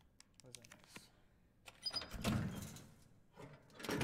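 A metal case clicks and thumps open.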